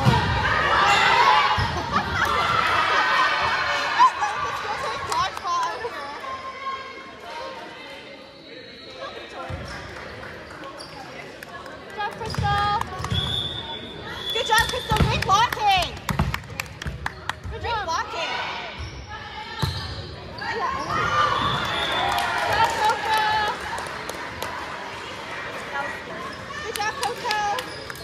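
Young girls call out and cheer loudly in a large echoing gym.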